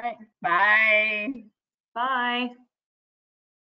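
A woman speaks cheerfully over an online call.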